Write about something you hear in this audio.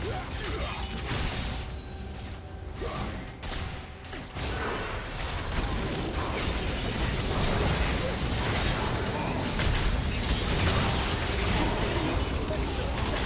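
Spell blasts and clashing combat effects crackle and boom in a busy game fight.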